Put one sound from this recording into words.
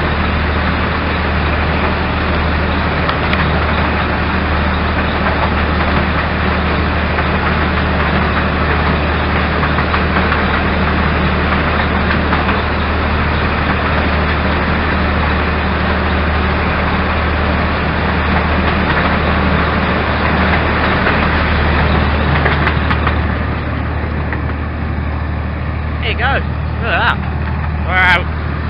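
A small engine hums and rumbles steadily close by.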